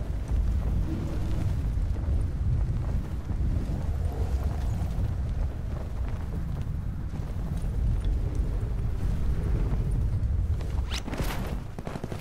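Wind roars loudly past during a fast fall through the air.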